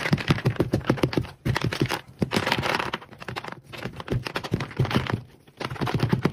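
Crunchy pieces crackle and rustle as hands press them through a plastic grid.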